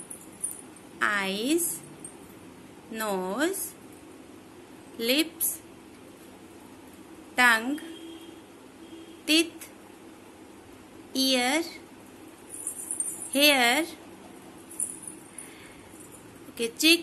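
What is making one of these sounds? A little girl sings a rhyme in short, high-pitched phrases close by.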